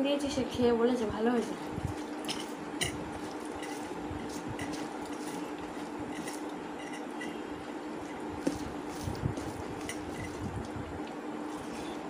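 Fingers squish and mix rice on a plate.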